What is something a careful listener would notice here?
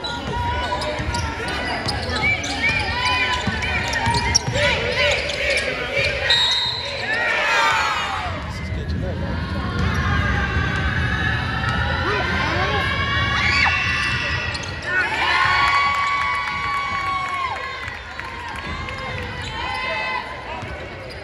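Young women call out to each other across the court.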